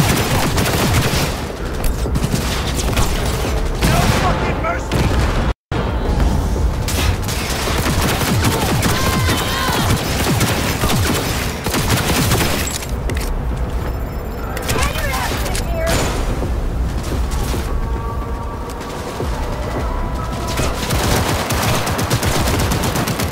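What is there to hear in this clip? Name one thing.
Gunshots crack repeatedly in quick bursts.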